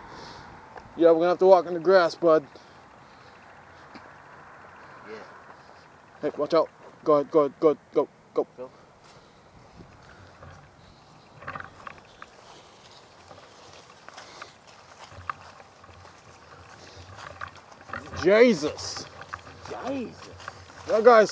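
A young man speaks close by, in short bursts.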